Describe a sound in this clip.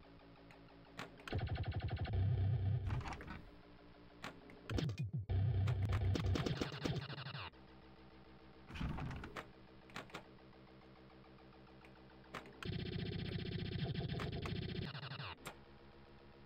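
A pinball clatters off bumpers with loud electronic bursts and dings.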